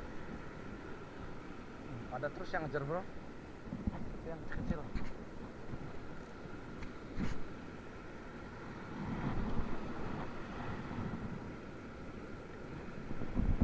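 Small waves wash gently up onto a sandy shore.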